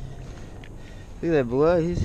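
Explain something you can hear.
Water splashes as a fish is dropped back into a river.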